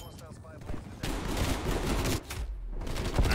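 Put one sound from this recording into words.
Gunfire rattles in quick bursts close by.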